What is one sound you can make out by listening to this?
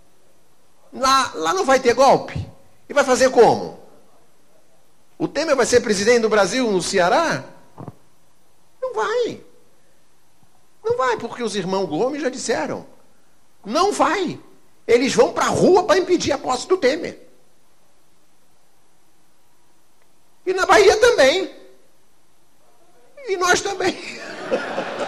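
An older man speaks into a microphone with animation, in short bursts with pauses.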